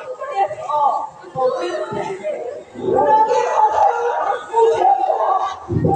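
A man speaks with emotion, heard from a distance in a large hall.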